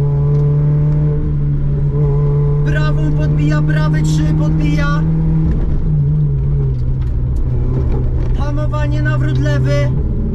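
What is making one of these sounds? A car engine roars steadily at speed, dipping in pitch briefly midway.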